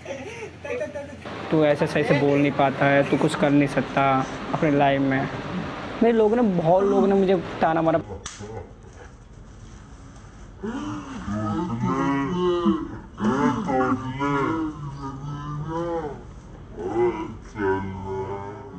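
Young men laugh loudly.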